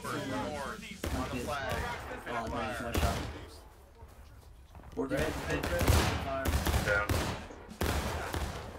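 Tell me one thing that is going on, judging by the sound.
Rifle shots crack nearby, one after another.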